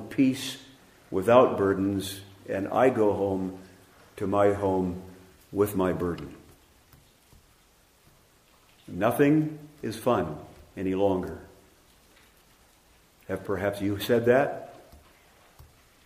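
An older man speaks with emphasis into a microphone, in pauses, in a slightly echoing room.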